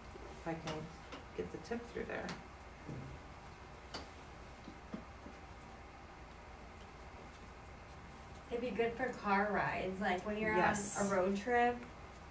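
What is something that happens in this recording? A seam ripper snips and scratches at fabric threads.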